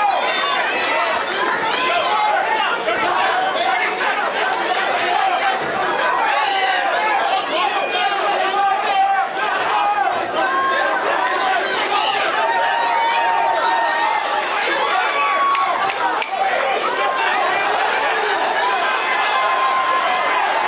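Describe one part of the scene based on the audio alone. A large crowd cheers and shouts throughout in a big echoing hall.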